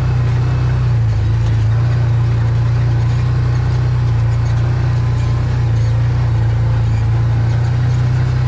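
Tyres rumble over a grassy field.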